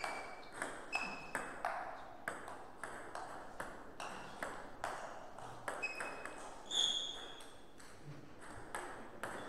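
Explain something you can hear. A ping-pong ball clicks back and forth off paddles and the table in quick rhythm.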